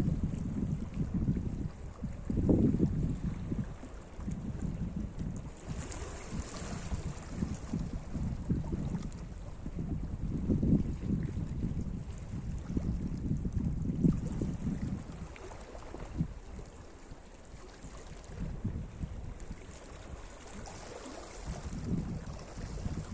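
Small waves lap and wash over rocks at the shore.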